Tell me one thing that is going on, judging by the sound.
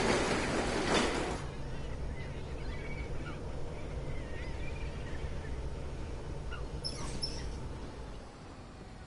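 A bus engine hums low as the bus rolls slowly.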